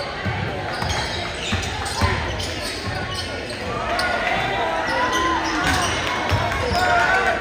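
A basketball bounces on a hard court with dull thuds.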